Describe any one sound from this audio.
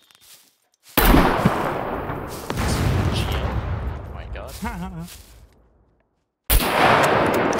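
A rifle fires loud shots that echo across open land.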